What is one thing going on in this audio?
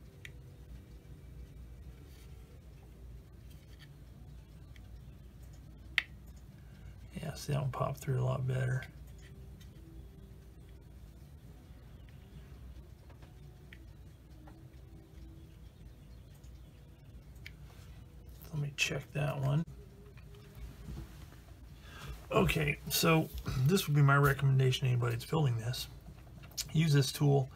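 Small plastic parts tick and click faintly as fingers fit them together.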